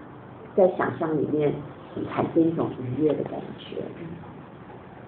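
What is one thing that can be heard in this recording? A woman speaks calmly into a nearby microphone.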